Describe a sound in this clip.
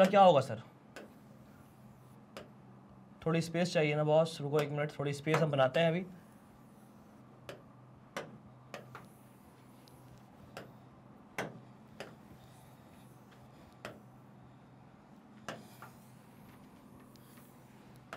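A pen taps and clicks against a hard surface.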